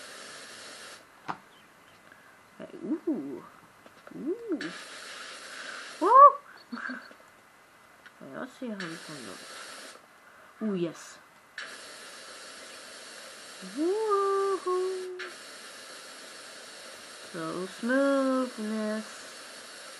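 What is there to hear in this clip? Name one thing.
Video game spraying sounds hiss in bursts.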